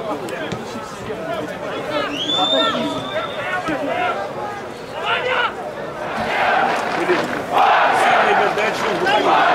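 Football players shout to each other across a pitch.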